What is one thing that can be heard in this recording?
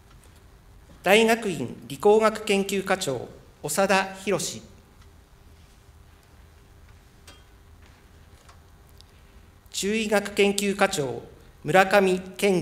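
A man speaks formally through a microphone in a large echoing hall.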